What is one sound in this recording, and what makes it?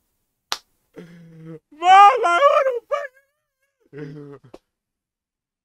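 A young man exclaims and laughs loudly into a nearby microphone.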